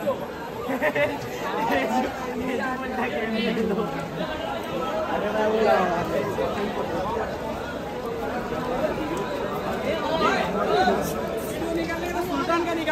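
A crowd of men talks loudly all around, close by.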